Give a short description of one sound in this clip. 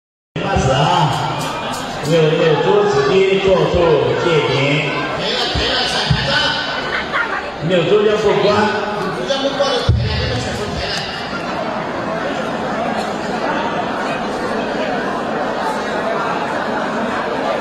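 A large crowd murmurs and shouts outdoors.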